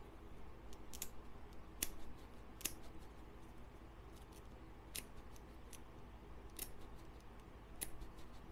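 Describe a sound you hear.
Something rustles softly close by.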